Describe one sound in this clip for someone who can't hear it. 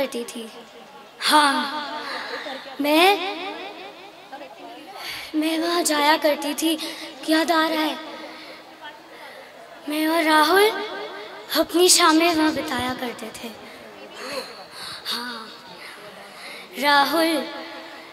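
A young woman speaks expressively into a microphone through loudspeakers outdoors.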